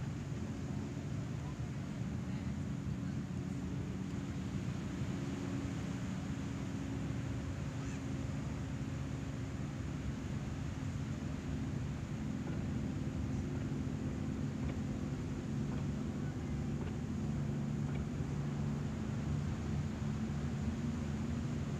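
A metal singing bowl rings with a low, steady tone.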